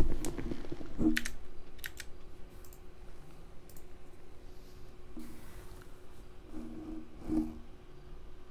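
Short soft menu beeps chime a few times.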